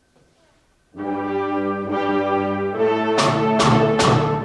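A concert band begins playing loudly.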